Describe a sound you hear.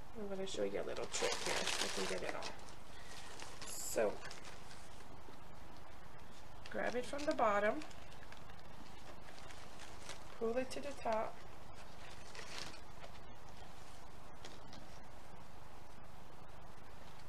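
Plastic ribbon and wrapping rustle and crinkle.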